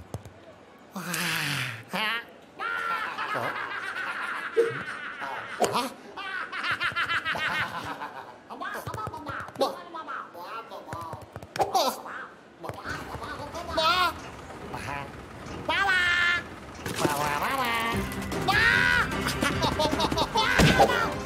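Cartoon rabbits screech and jabber loudly with excitement.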